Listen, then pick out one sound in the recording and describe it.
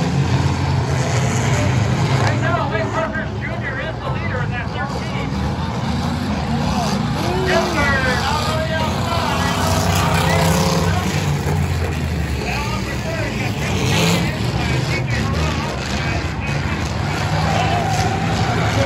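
A crowd murmurs and chatters nearby outdoors.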